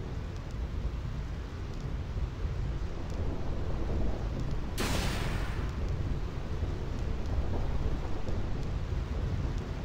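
Stormy wind roars steadily outdoors.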